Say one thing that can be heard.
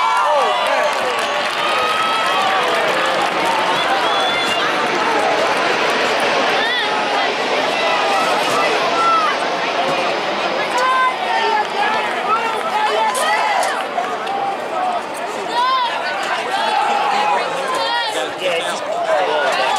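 A crowd of spectators chatters and cheers outdoors nearby.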